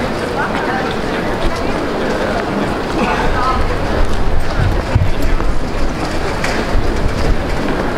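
A crowd of people chatters at a distance outdoors.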